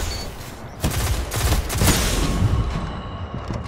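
A heavy blast booms and rumbles.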